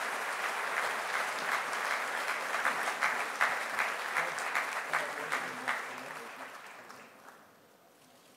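A large audience applauds, then the clapping fades away.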